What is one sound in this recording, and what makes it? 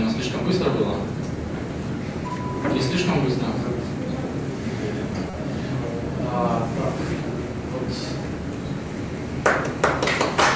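A young man speaks calmly through a microphone in a large hall.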